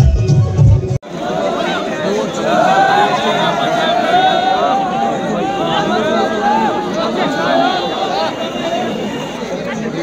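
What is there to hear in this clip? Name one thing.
A large crowd of young men chants and cheers loudly outdoors.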